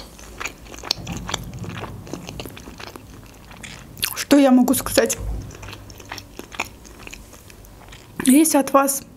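A young woman chews food close to a microphone with soft wet smacking sounds.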